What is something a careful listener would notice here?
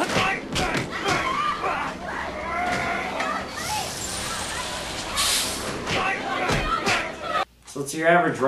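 Several people talk and shout loudly in a crowd.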